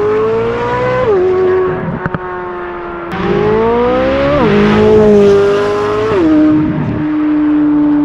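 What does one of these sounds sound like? A sports car engine roars and shifts through gears as it accelerates.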